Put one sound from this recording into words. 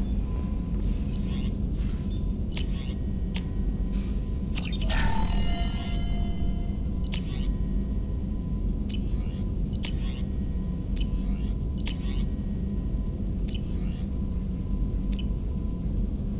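Soft electronic clicks sound as menu items are selected.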